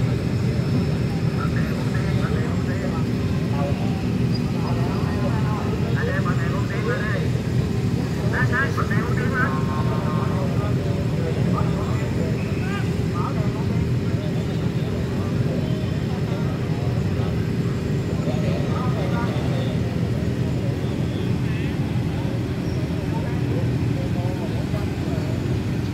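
Motorcycle engines idle with a steady low rumble.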